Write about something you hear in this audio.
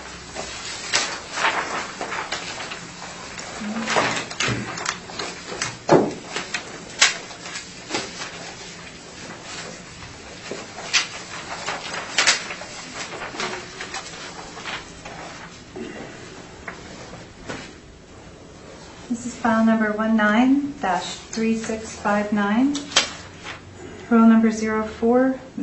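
Papers rustle and tap on a table.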